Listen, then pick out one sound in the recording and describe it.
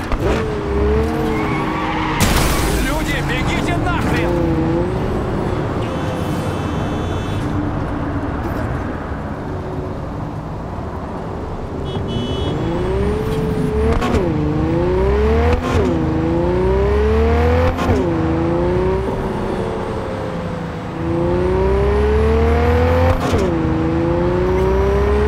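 A car engine revs up and down, shifting gears as it speeds along.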